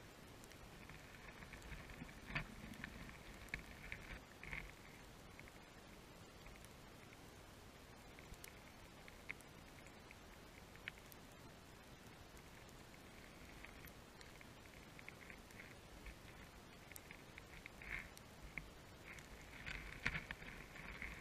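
Faint clicks and crackles sound all around underwater.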